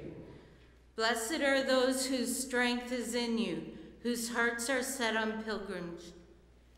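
A woman reads out calmly into a microphone.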